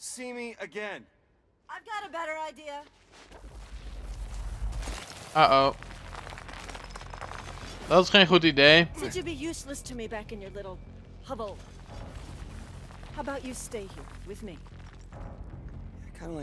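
A woman speaks calmly and coldly.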